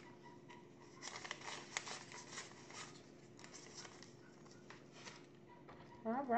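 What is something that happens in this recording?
Paper bills rustle and flick as they are counted.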